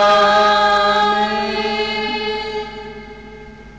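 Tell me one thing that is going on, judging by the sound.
A man sings a long, held note through a microphone, then fades away.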